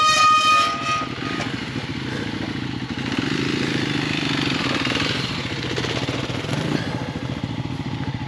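Dirt bike engines rumble nearby as riders pull away.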